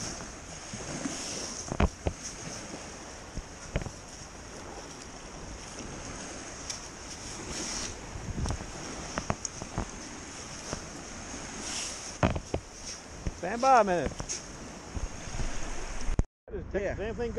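Small waves wash gently onto the sand.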